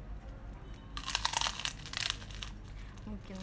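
A young woman bites into crunchy food.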